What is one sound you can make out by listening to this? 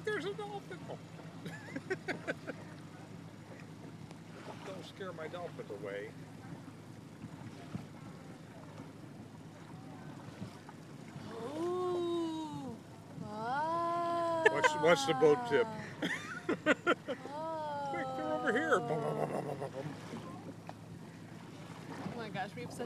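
A boat motor hums steadily across calm water.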